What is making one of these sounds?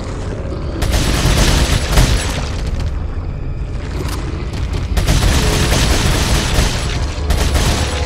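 A creature growls and snarls.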